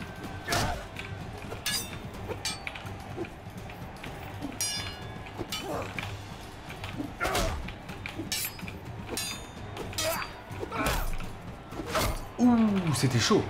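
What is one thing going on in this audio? Swords clang and clash in a fight.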